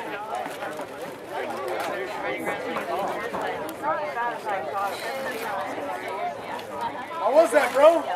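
Young boys chatter and talk together nearby.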